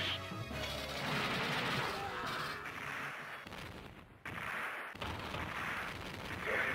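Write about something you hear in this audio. Loud explosions burst and crackle repeatedly.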